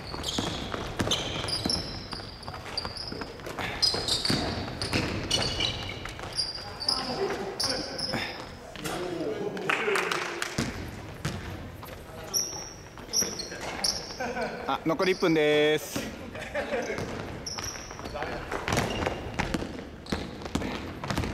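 Young men shout and call out to each other across a large echoing hall.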